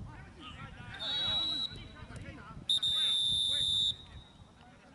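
A referee blows a whistle in long shrill blasts.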